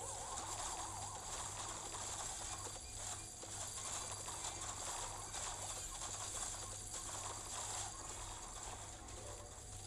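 Video game sound effects pop and crackle rapidly.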